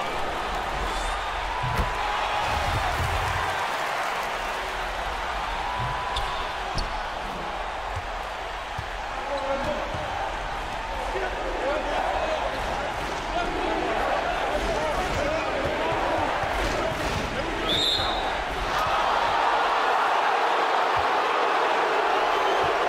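A large crowd cheers and murmurs steadily in an echoing arena, swelling louder near the end.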